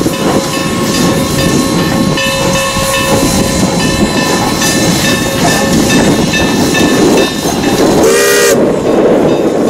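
Train wheels rumble and clatter on the rails.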